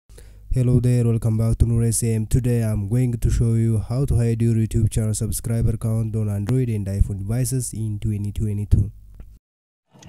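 A man speaks calmly, close up.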